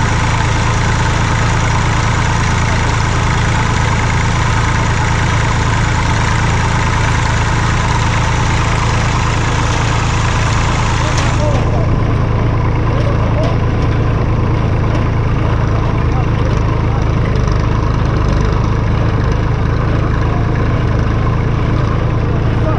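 A baler clatters and thumps as it runs.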